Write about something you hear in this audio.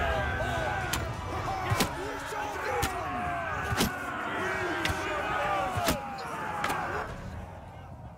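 Weapons clash in a distant battle.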